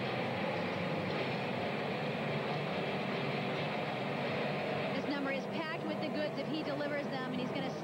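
Ice skate blades scrape and glide across the ice.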